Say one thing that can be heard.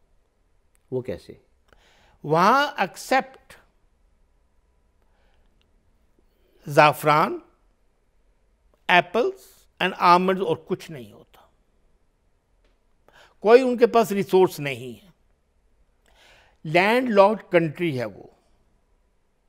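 An elderly man speaks calmly into a close microphone, in short phrases with pauses.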